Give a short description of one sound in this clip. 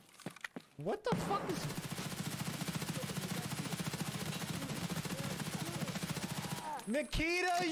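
A rifle fires rapid automatic bursts close by.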